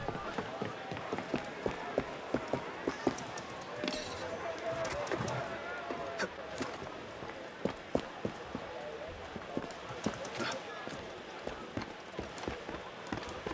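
Quick footsteps patter across roof tiles.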